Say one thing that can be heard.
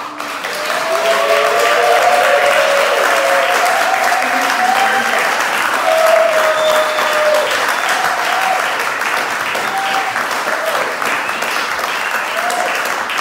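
A woman sings into a microphone in a large hall.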